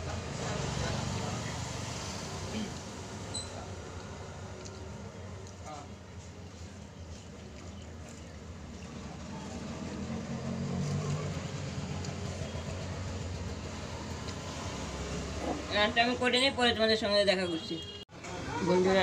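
A middle-aged woman talks close by, calmly.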